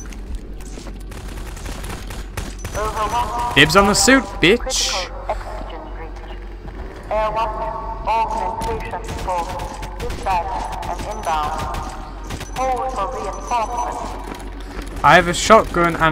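A shotgun is pumped and reloaded with metallic clicks.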